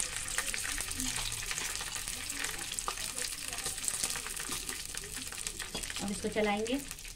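Seeds crackle and sizzle softly in a hot metal pan.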